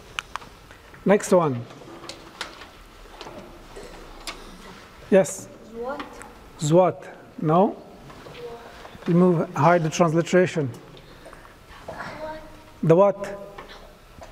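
A man speaks calmly and clearly into a microphone in an echoing room.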